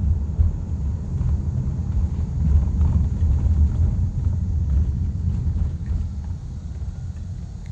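A car's engine and road noise rumble low and steady from inside the car.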